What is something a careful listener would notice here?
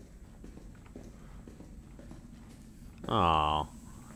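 Footsteps tap slowly on a hard floor.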